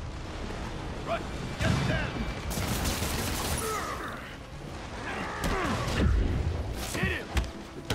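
Punches and kicks thud in a brawl.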